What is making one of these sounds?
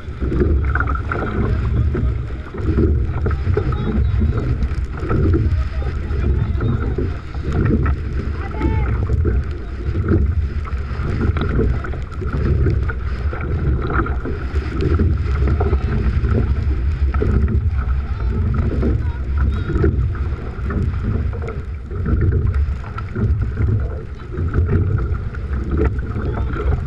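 Oars splash and knock rhythmically as a crew rows.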